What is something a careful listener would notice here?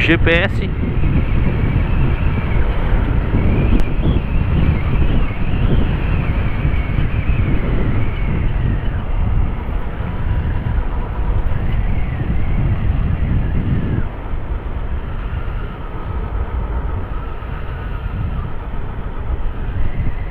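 Wind buffets the microphone as the motorcycle rides.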